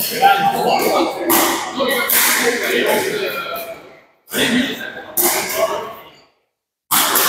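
A man talks casually in a large echoing hall.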